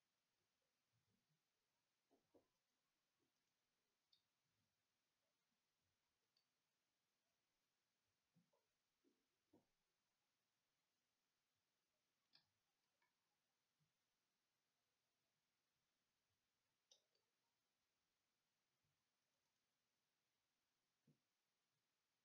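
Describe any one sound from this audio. A young man murmurs briefly and quietly into a headset microphone.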